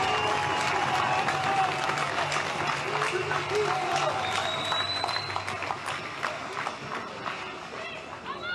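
A large crowd claps and cheers outdoors.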